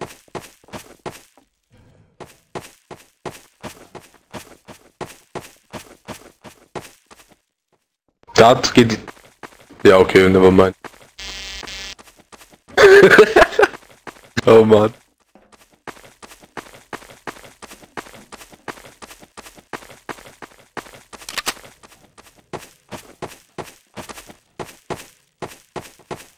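Footsteps thud steadily across a floor.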